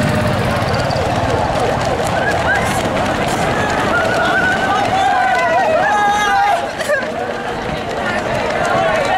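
Many runners' footsteps patter on pavement.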